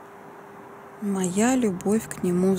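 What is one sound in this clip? A middle-aged woman speaks close by, with expression.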